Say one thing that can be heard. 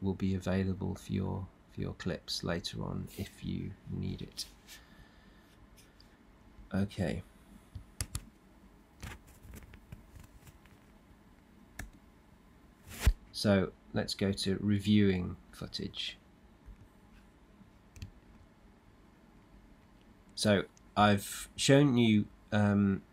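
A middle-aged man talks calmly into a microphone, close up.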